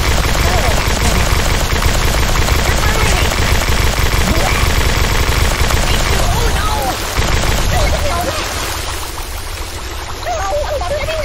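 Water gushes and sprays in loud, rushing jets.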